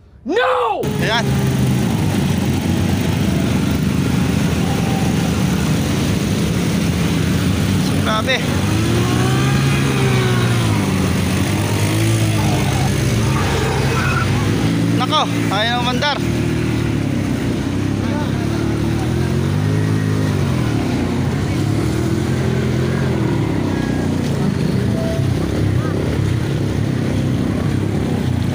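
Motorbike engines rev loudly, their pitch rising and falling.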